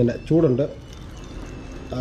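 Milky coffee pours from one metal cup into another.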